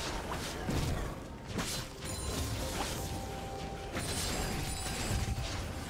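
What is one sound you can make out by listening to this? Video game combat effects clash and whoosh in quick bursts.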